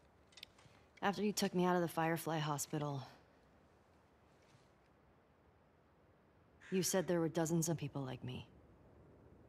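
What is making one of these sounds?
A teenage girl speaks earnestly, close by.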